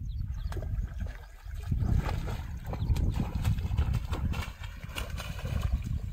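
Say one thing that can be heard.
A fish splashes in the water while being reeled in.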